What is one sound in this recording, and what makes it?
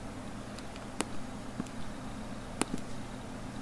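A small plastic button clicks.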